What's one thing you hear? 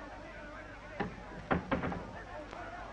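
A door latch clicks and rattles.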